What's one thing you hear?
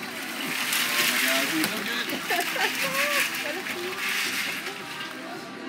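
Boiled crawfish rattle and clatter as they pour out of a metal pot onto a table.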